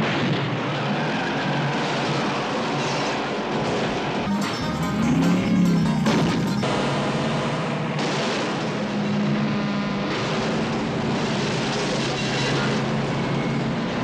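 Car engines roar.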